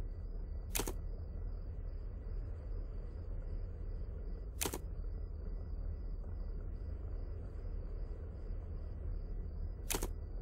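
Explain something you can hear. A menu button clicks sharply a few times.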